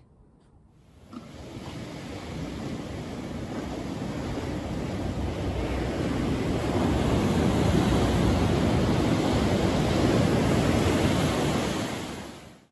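Waves wash steadily onto a pebbly shore.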